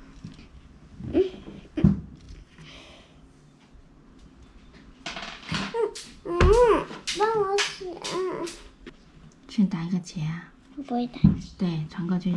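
A young girl talks close by, with animation.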